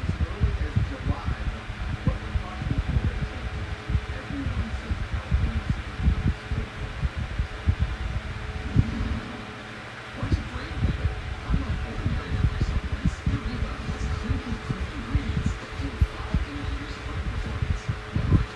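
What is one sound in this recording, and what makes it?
Air from a fan buffets against the microphone in low, gusty rumbles.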